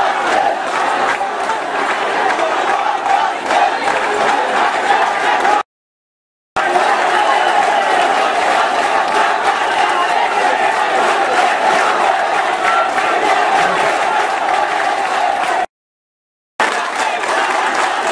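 A large crowd shouts and chants loudly outdoors.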